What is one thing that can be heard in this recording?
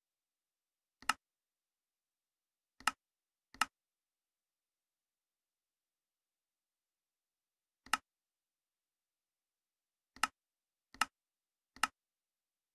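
Game menu buttons click sharply, one at a time.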